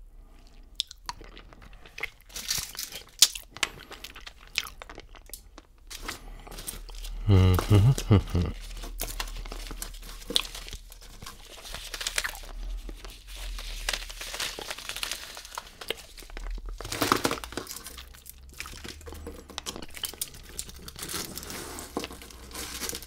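Plastic candy wrappers crinkle and rustle as a hand sorts sweets.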